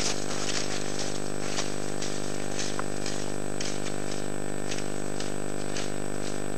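Cross-country skis swish and scrape over snow.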